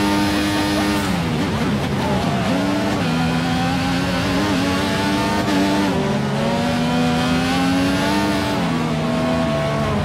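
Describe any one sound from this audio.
A racing car engine drops in pitch as the car brakes, then climbs again through the gears.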